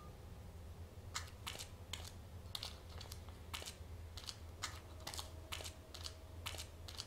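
Footsteps shuffle over a gritty floor.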